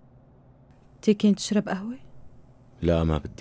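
A young woman speaks close by in a quiet, tense voice.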